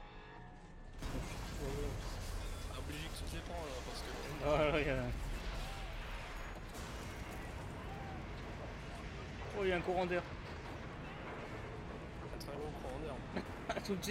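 An explosion bursts with a deep, lingering rumble.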